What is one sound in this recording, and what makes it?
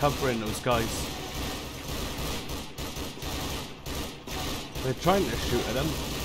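Laser guns fire in quick shots.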